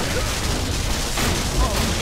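Game gunfire bursts in rapid shots.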